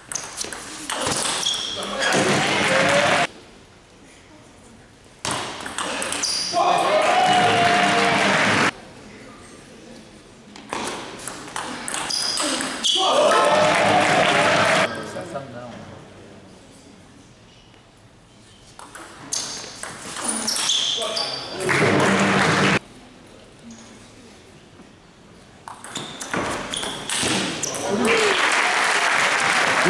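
A ball clicks back and forth on a table and paddles in a large echoing hall.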